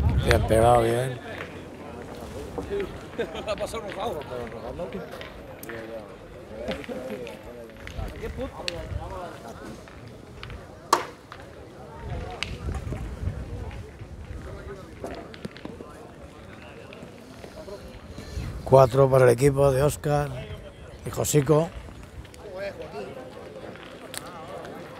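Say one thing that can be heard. Men talk and call out nearby outdoors.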